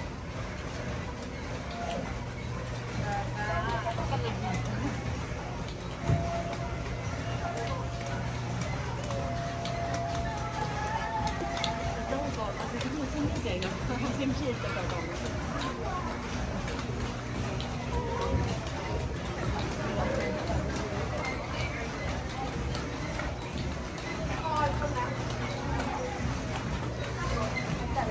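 Water laps against a ride boat gliding through a channel.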